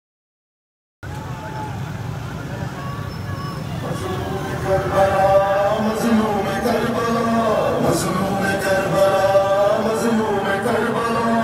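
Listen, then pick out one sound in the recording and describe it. A crowd of men chants loudly outdoors.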